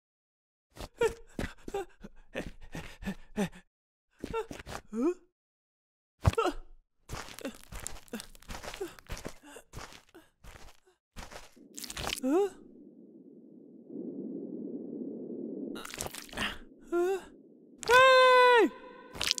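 A young woman speaks in surprise, close by.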